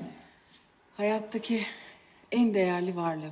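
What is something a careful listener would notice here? A young woman speaks softly and playfully up close.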